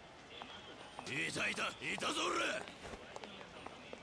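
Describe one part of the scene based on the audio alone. A young man shouts angrily.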